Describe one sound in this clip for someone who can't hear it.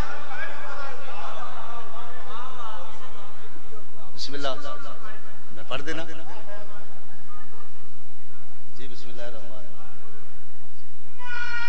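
A man speaks passionately into a microphone over a loudspeaker, in an echoing hall.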